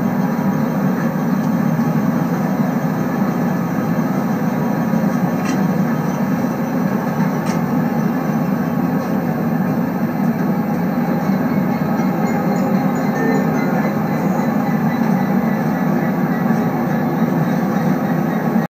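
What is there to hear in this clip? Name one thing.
A train's electric motor hums steadily as it rolls along the rails.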